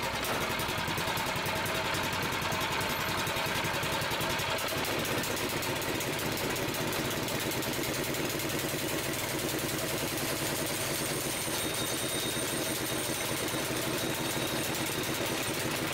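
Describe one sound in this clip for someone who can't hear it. A small petrol engine idles steadily close by, with a fast even chugging.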